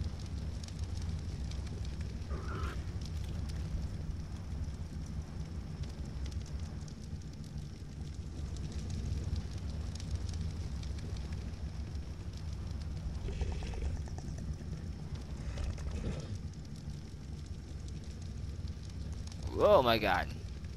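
Fires crackle and pop steadily.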